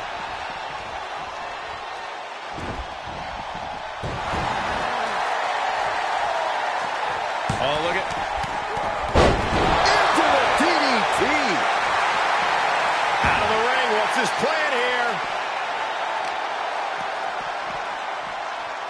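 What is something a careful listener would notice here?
A large crowd cheers loudly throughout, growing louder partway.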